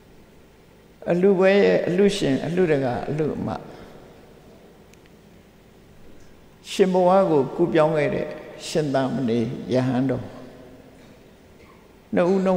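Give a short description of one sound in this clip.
An elderly man speaks slowly and calmly, with long pauses.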